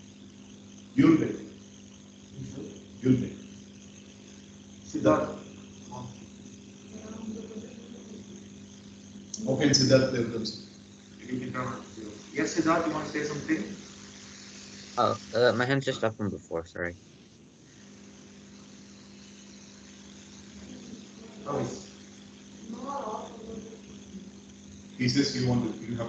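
A man speaks into a microphone in short bursts, heard through an online call.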